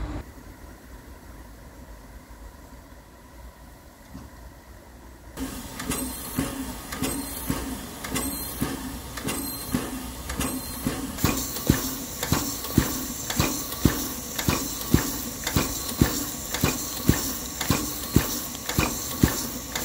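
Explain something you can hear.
A steam locomotive idles with a low rumble.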